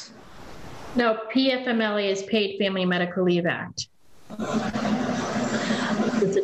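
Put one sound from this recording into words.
Another middle-aged woman speaks with animation over an online call.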